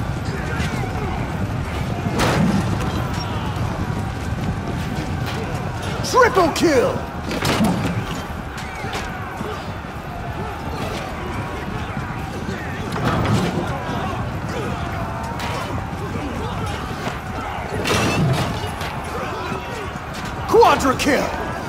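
Armoured soldiers march with a steady clatter and rumble.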